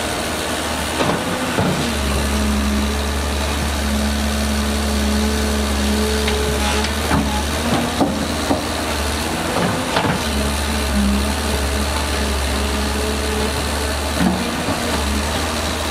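Rocks clatter and thud as they tip from a dump truck.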